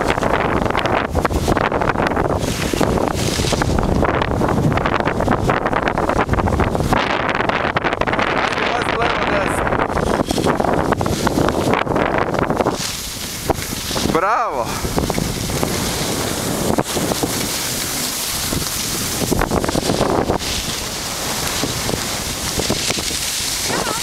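Skis scrape and hiss over snow close by.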